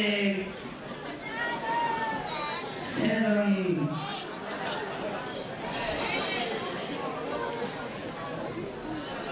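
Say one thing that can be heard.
A large crowd cheers and whoops in a big echoing hall.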